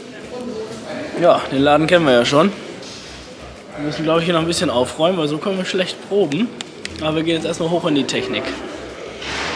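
A young man speaks close by with animation in a large echoing hall.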